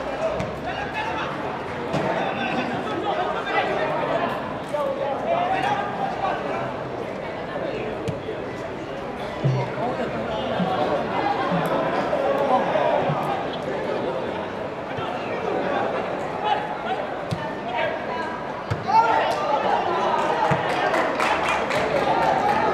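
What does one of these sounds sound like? A football thuds as players kick it across a grass pitch.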